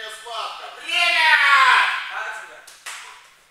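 A young man shouts loudly in an echoing hall.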